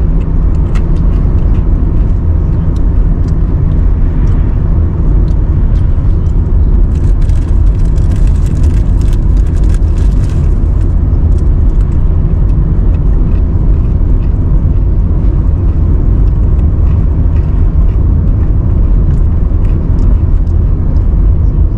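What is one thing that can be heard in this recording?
A car engine hums steadily from inside a moving car.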